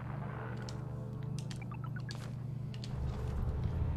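Short electronic clicks and beeps sound in quick succession.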